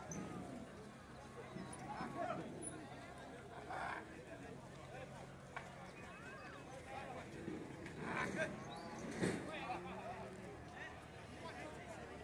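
A large crowd of men chatters outdoors.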